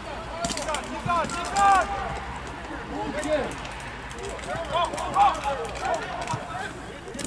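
Men shout across an open outdoor field.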